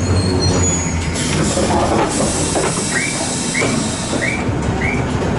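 A tram door slides open with a hiss.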